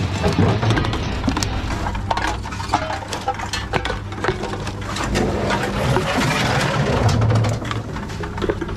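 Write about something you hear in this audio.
A plastic bottle crinkles and rattles in a hand.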